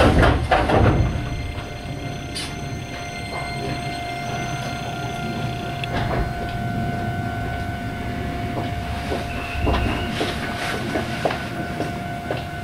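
A steady electric hum drones from a stopped train.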